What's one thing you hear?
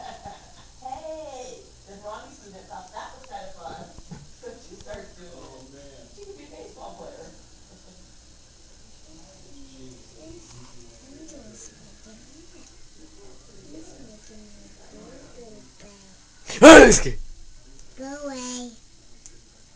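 A young child babbles and talks nearby.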